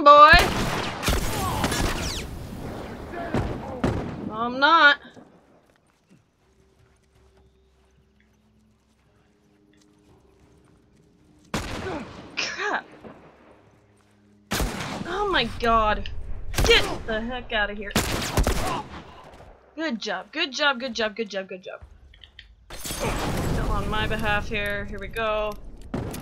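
A young woman talks with animation close to a headset microphone.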